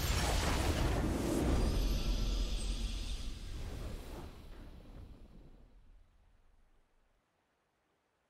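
A triumphant game victory fanfare plays loudly, then fades away.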